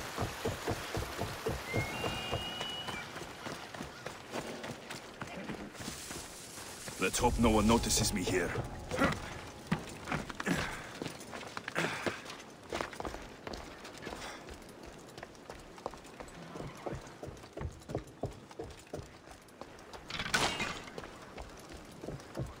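Footsteps run quickly over wooden planks and dirt.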